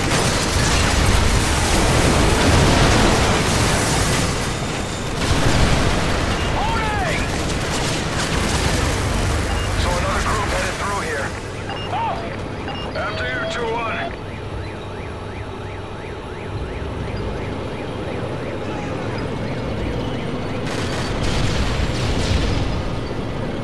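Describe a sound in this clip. A heavy machine gun fires in rapid, loud bursts.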